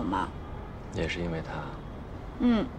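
A young man answers briefly in a calm voice.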